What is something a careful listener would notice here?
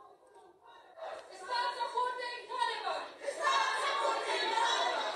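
Women chant and shout together in a crowd.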